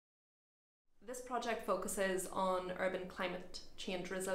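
A young woman speaks clearly and with animation close to a microphone.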